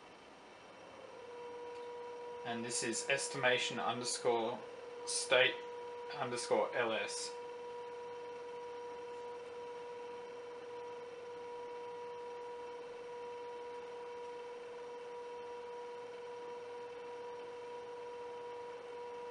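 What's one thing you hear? An electric motor whines steadily at a high pitch.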